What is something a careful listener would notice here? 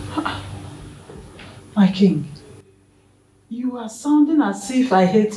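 A woman speaks with emotion, close by.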